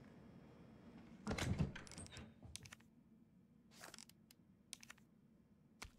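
Short menu clicks sound.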